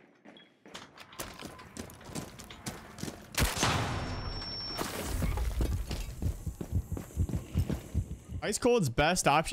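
Gunshots crack in quick bursts with a roaring blast.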